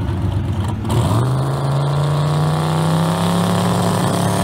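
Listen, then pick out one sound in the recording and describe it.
A car engine revs up sharply and holds a high roar.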